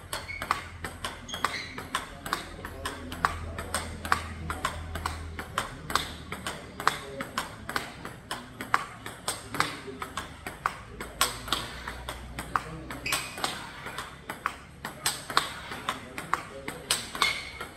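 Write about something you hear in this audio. A table tennis ball is struck back and forth with paddles.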